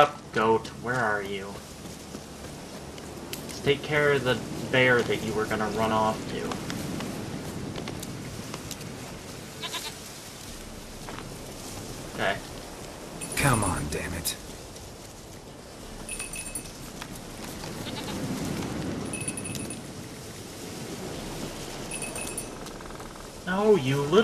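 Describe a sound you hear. Footsteps rustle through tall grass.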